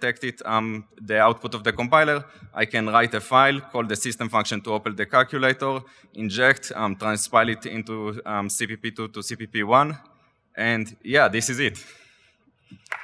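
A young man speaks into a microphone with animation, echoing slightly in a large hall.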